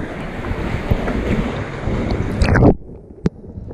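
Water splashes and sloshes close by at the surface.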